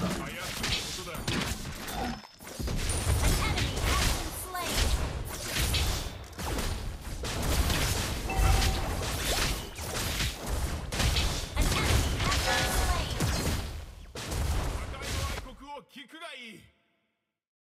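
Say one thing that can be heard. Game sound effects of spells and hits burst and clash rapidly.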